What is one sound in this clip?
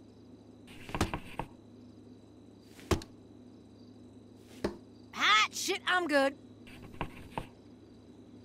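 Darts thud into a dartboard one at a time.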